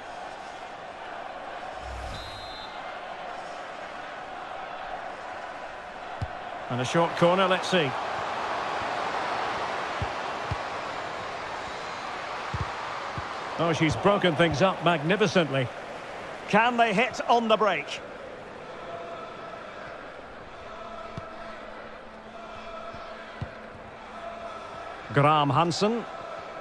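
A large crowd murmurs and cheers steadily in a big stadium.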